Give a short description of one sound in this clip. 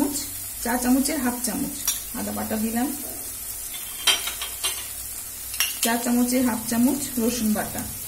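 A spoon taps against the rim of a pan.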